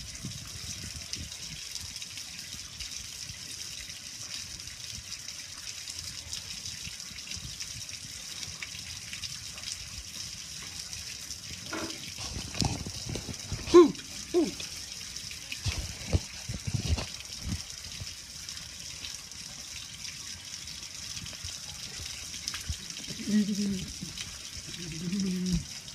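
Hailstones patter and bounce steadily on a metal grill lid and on hard ground outdoors.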